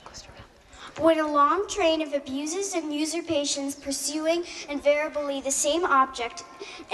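A young girl sings into a microphone through loudspeakers outdoors.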